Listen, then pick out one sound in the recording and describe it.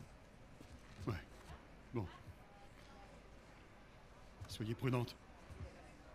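A man answers calmly nearby.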